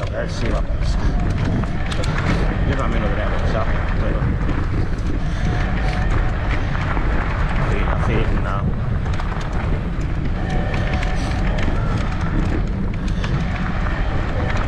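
Bicycle tyres crunch and rattle over a rough gravel track.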